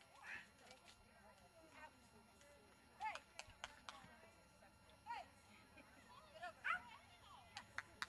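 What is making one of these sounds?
A dog barks excitedly.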